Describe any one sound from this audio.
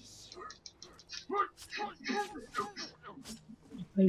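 A blade stabs into flesh with a wet thud.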